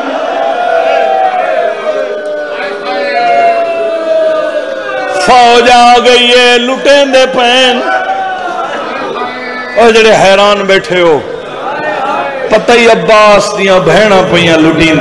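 A man chants a mournful recitation loudly through a microphone, his voice rising and falling.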